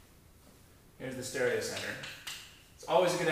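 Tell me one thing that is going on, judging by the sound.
A man speaks clearly and calmly, close by.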